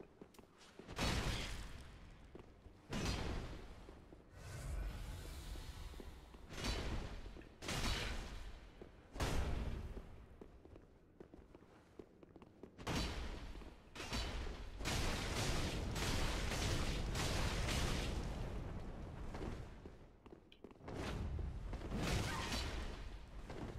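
Swords clash and strike with sudden metallic hits.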